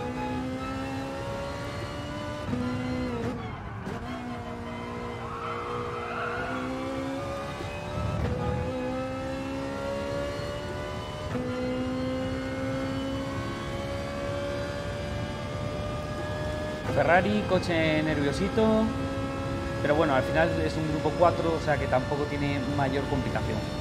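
A racing car engine roars steadily, rising in pitch and dropping with each gear change.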